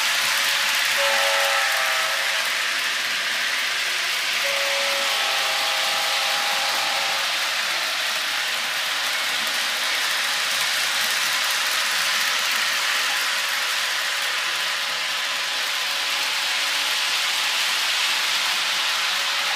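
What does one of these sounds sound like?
A toy train rattles and hums along a track.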